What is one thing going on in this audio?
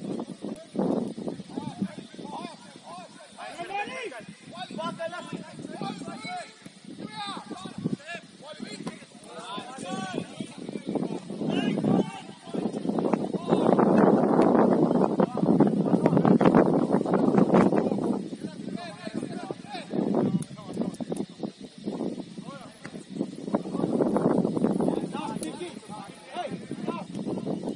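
Young men shout to each other from a distance outdoors.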